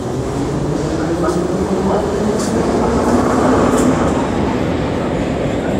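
Train wheels screech and squeal on the rails.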